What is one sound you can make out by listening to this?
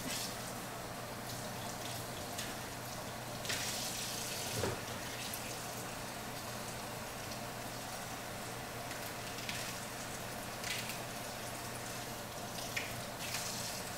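Hands press and pat soft dough.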